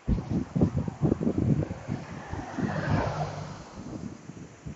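A car drives past on a nearby road.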